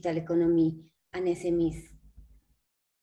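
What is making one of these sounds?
A woman speaks calmly into a microphone over an online call.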